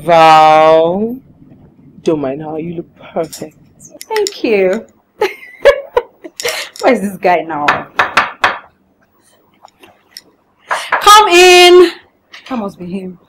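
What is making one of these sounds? A young woman talks animatedly nearby.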